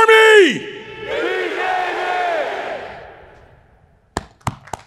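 A crowd of young men shouts in unison.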